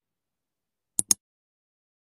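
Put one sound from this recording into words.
A finger taps a touchscreen with a quick double click.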